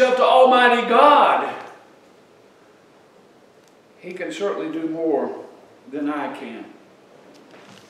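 An elderly man speaks steadily through a microphone, pausing between phrases.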